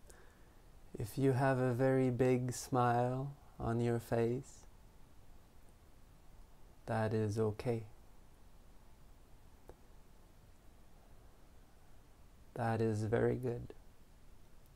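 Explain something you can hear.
A man speaks calmly and slowly close to a microphone, with long pauses.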